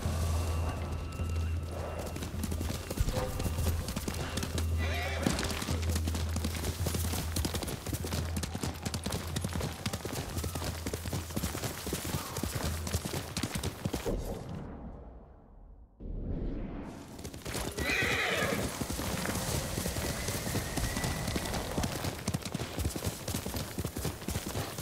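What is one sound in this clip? A horse gallops, its hooves pounding on the ground.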